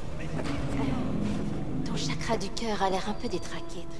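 A metal door slides open.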